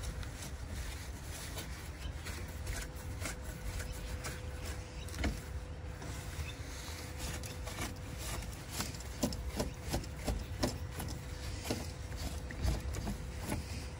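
A cloth rubs and brushes against plastic and metal parts.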